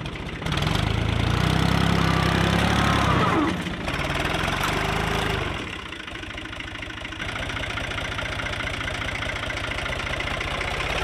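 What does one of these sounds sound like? A tractor engine rumbles and chugs close by, revving hard at first and then settling to a steady idle.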